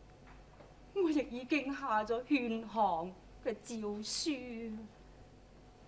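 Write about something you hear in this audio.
An older woman speaks with agitation, close by.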